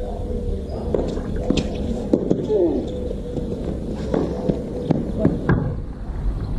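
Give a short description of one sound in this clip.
A tennis ball is struck back and forth with rackets, with sharp pops.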